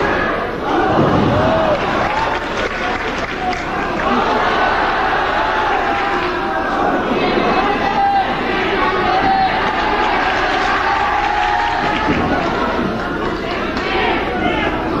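A crowd in a large echoing hall shouts and cheers throughout.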